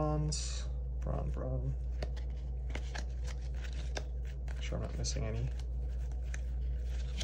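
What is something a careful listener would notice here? Playing cards rustle and slide against each other as they are shuffled by hand.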